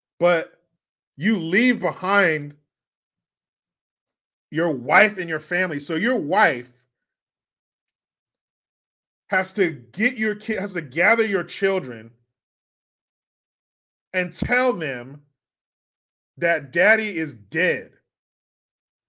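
A man speaks calmly into a microphone, in bursts with pauses, as if over an online call.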